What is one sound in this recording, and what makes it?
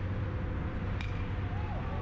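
A metal bat strikes a baseball with a sharp ping.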